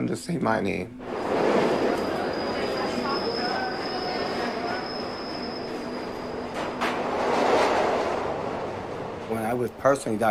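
A subway train roars past loudly.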